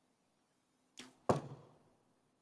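A bowstring twangs sharply as an arrow is released.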